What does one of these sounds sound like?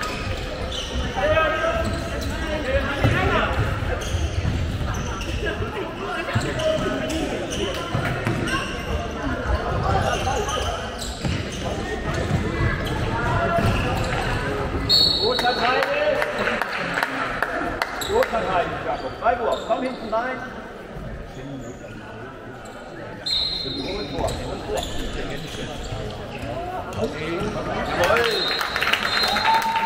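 Young players shout to each other across an echoing hall.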